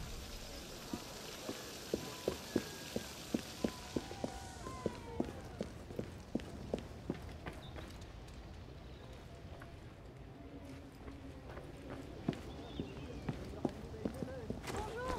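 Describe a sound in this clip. Footsteps tap on a hard floor in quick succession.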